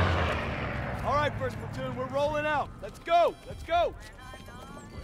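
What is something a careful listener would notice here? A man calls out orders.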